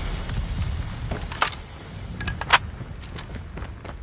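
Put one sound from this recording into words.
A weapon is reloaded with metallic clicks.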